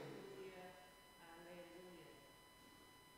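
A man chants in a slow, sung voice in an echoing room.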